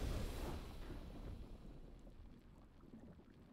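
A deep game victory sound booms and slowly fades.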